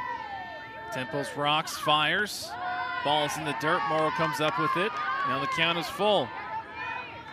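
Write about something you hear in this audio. A crowd in the stands cheers and claps.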